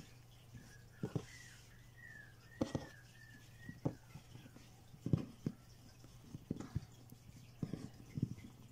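Fingers tap and knock lightly on a wooden table.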